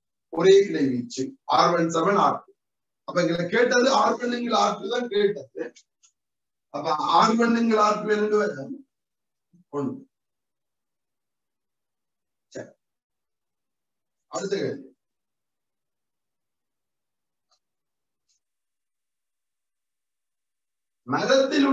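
A young man speaks calmly in short phrases, close by, with long pauses.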